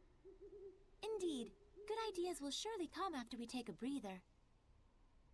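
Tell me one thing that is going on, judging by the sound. A young woman speaks gently.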